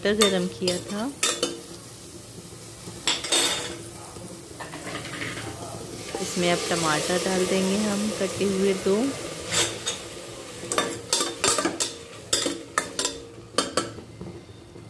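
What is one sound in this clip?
A metal spoon scrapes and clinks against a steel pot.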